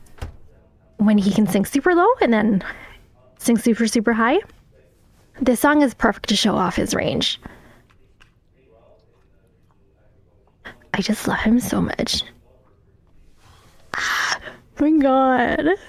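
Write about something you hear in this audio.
A young woman talks with animation into a close microphone, in bursts with pauses.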